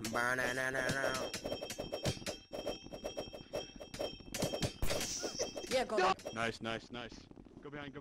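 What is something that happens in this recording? Swords clash and slash in a rapid, chaotic fight.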